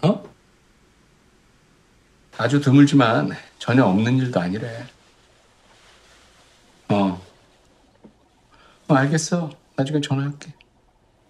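A man speaks calmly into a phone, close by.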